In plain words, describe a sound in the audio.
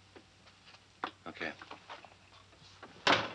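Footsteps tread on a wooden floor.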